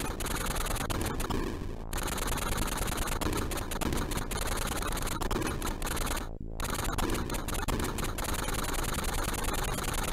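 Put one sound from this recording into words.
Rapid electronic blasts crackle from a retro video game.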